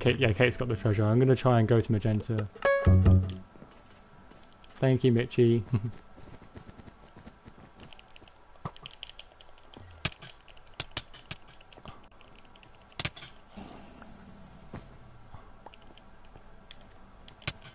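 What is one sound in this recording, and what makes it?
Short game hit sounds click and thud as a sword strikes.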